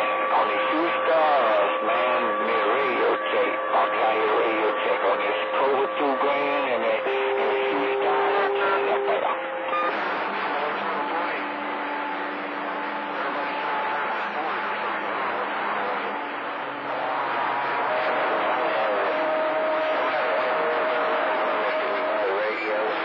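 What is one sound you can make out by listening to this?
A radio receiver hisses and crackles with static through a small loudspeaker.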